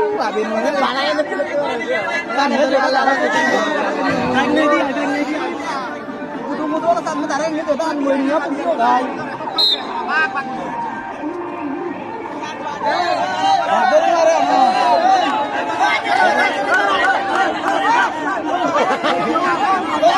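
A large outdoor crowd of children and adults shouts and cheers.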